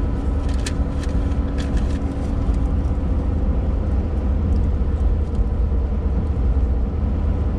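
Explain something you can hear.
Tyres roll over a wet road with a steady hiss.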